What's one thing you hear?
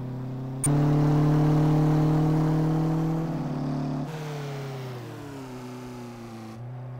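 A car engine drones steadily at high revs, its pitch slowly dropping.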